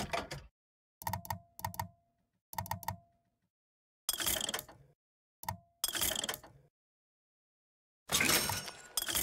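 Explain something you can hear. Short electronic beeps sound in quick bursts.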